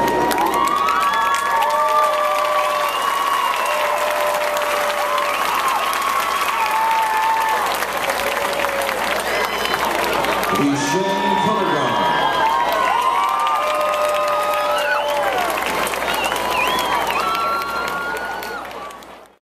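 A marching band plays loud brass music outdoors.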